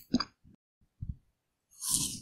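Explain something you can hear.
A woman bites into a crunchy ice cream bar up close.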